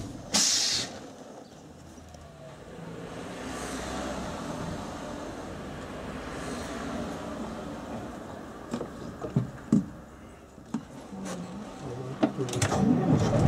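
An old bus engine idles quietly.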